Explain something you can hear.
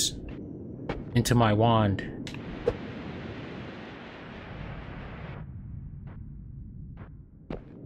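Short electronic game sound effects blip and click.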